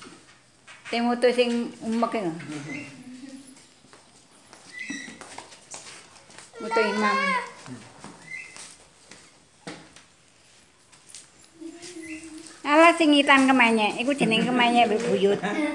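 Young children shout and chatter nearby.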